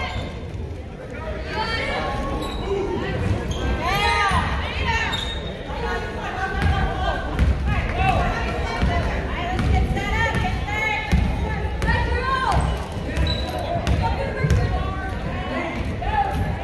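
A crowd of spectators calls out and cheers in an echoing gym.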